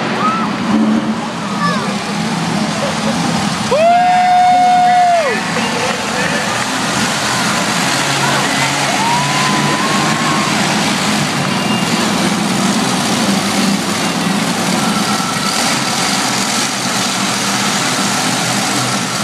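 A crowd murmurs and cheers throughout the arena.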